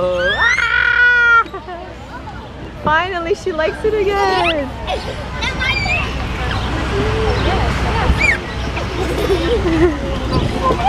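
A young girl squeals and laughs loudly close by.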